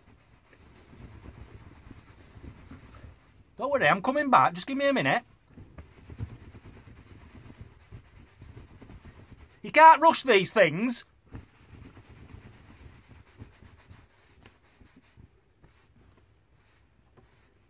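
A towel rubs and rustles against a dog's fur.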